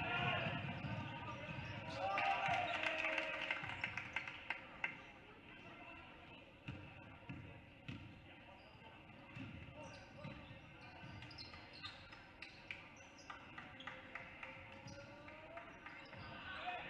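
A crowd cheers and murmurs in a large echoing gym.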